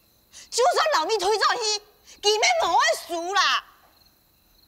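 A young woman speaks loudly and with feeling, close by.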